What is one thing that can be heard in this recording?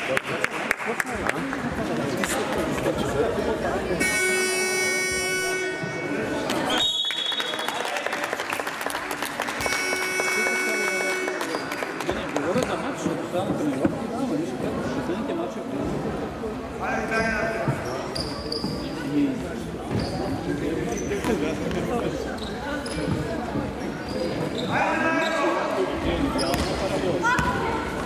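Young players call out in a large echoing hall.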